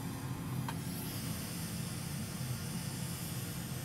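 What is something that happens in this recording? Solder hisses and sizzles faintly under a hot soldering iron.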